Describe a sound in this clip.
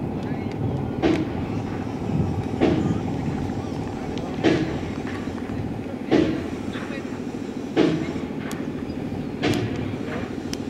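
A cricket bat taps on the ground several times.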